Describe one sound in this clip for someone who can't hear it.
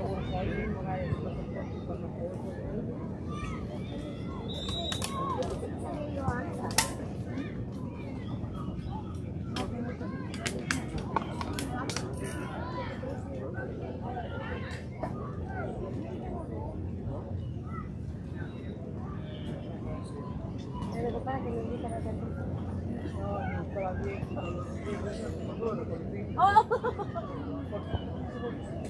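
Men chat casually nearby outdoors.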